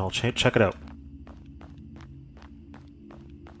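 Footsteps crunch on a stone path.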